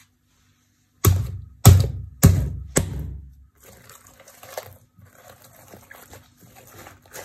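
Hands squeeze and squish soft slime with wet squelches.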